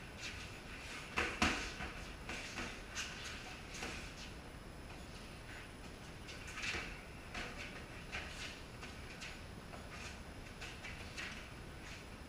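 Boxing gloves thud and slap as punches land.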